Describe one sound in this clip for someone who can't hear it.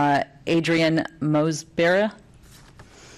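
A middle-aged woman speaks calmly into a microphone in a large room.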